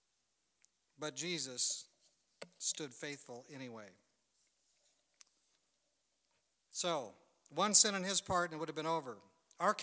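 A middle-aged man speaks calmly and clearly into a close microphone, with pauses.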